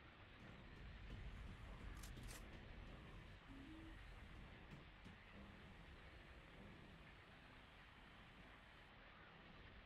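Footsteps thud on a metal floor.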